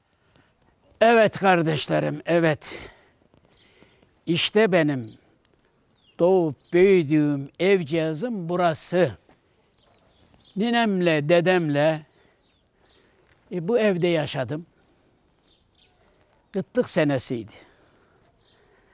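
An elderly man speaks calmly and close to a microphone, in short phrases with pauses.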